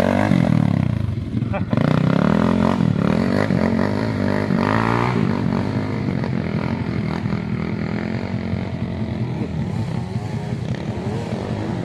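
A dirt bike engine roars as it climbs a slope and fades into the distance.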